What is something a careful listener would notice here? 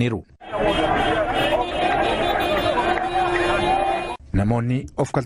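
A large crowd chants and cheers outdoors.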